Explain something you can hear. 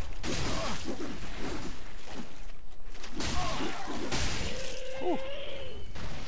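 Swords swing and clash in a fight.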